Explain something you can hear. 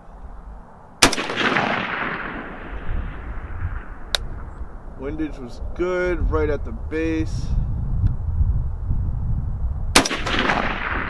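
A rifle fires loud shots that echo across open ground.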